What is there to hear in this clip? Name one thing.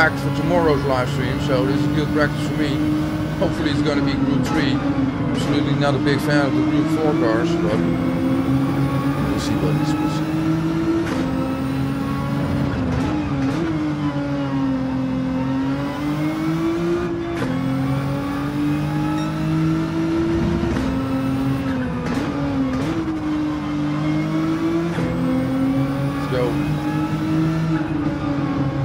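A racing car engine roars, revving up and dropping with each gear change.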